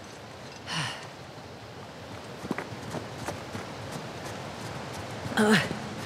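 Footsteps scuff up stone steps.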